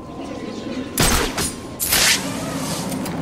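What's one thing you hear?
A cape whooshes loudly as a figure swoops down through the air.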